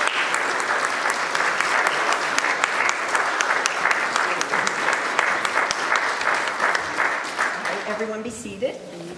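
An audience applauds in a room with a lot of echo.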